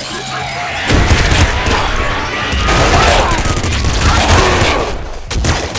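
Electric zaps crackle in a video game.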